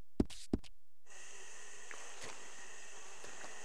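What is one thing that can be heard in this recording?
Footsteps squelch on a muddy path.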